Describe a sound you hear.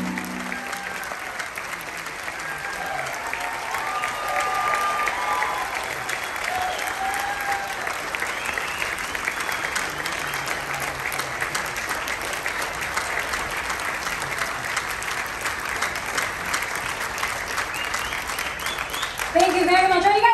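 An audience applauds and cheers in a large hall.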